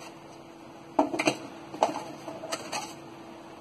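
Cardboard rustles and knocks as hands reach into a box.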